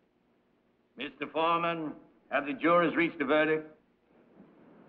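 An elderly man speaks sternly and loudly.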